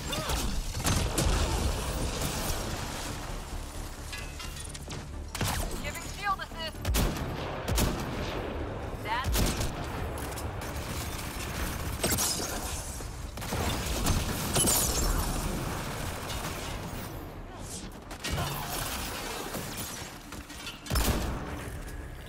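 Explosions boom in heavy bursts.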